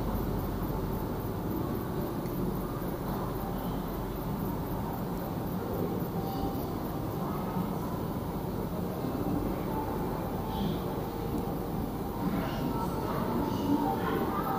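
Footsteps echo in a large hall.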